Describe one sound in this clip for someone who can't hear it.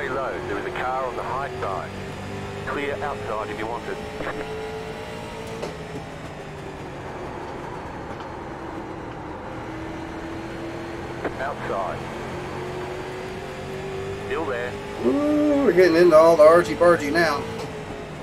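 A race car engine drones steadily, rising and falling in pitch.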